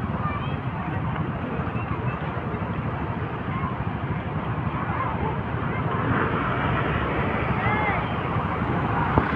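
Vehicle engines rumble slowly past outdoors.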